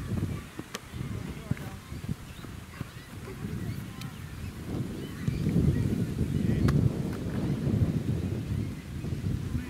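Wind blows across an open outdoor space, buffeting the microphone.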